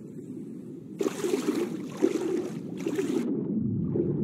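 Water splashes as a swimmer plunges in.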